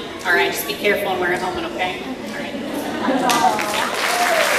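A woman speaks loudly in a large hall.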